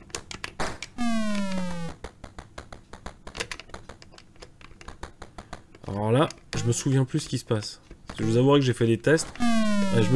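Retro electronic game blips and falling tones play.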